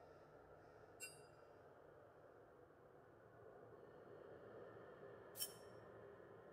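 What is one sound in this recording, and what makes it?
A mouse clicks.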